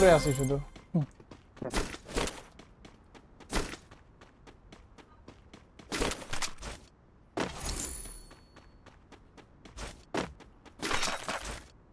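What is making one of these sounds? Footsteps thud quickly on hard ground.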